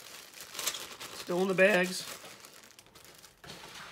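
Plastic packaging crinkles in a man's hands.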